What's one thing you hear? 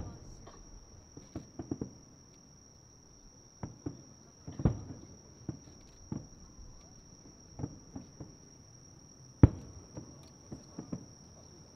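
Fireworks boom and crackle in the distance, one burst after another.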